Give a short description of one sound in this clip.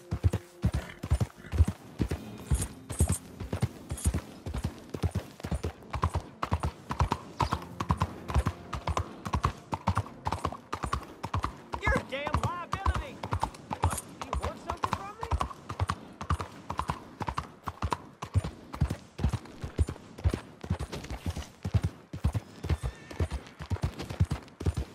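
Horse hooves pound rapidly on a muddy road.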